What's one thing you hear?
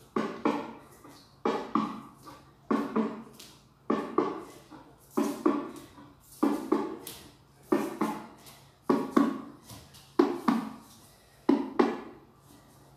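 Bare feet stomp rhythmically on a hard floor.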